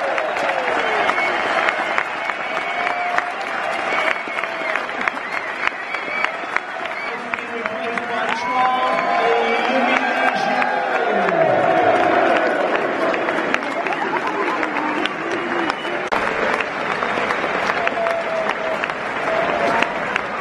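A huge stadium crowd sings and chants loudly.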